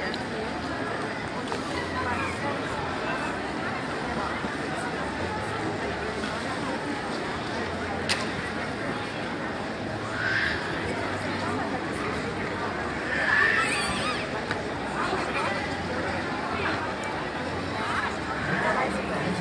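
A crowd murmurs and chatters steadily outdoors below.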